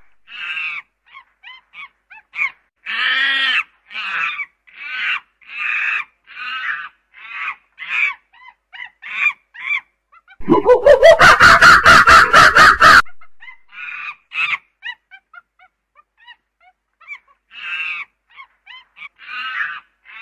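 A chimpanzee hoots in rising calls that build to loud, shrill screams.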